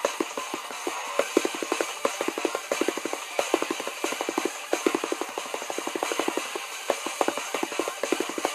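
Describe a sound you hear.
Upbeat electronic music plays from a tablet's speaker.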